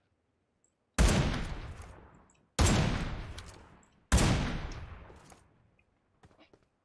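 Sniper rifle shots crack loudly, each followed by a fading echo.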